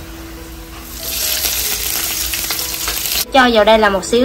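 Water pours into a hot pan with a hiss.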